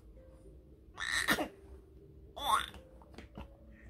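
A baby squeals and laughs.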